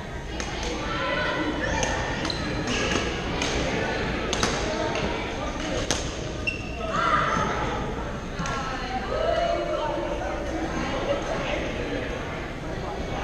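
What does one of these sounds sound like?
Shoes squeak on a gym floor.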